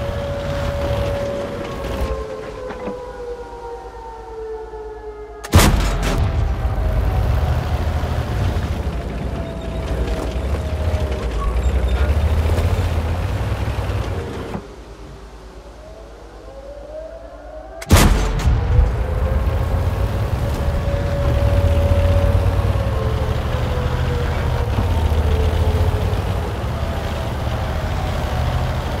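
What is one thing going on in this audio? A tank engine rumbles and whines as the tank drives.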